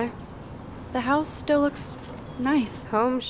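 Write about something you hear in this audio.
A young woman speaks softly.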